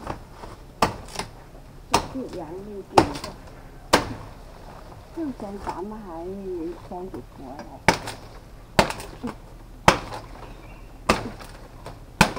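A machete chops sharply into wood in repeated blows.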